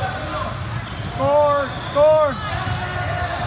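A referee blows a whistle twice.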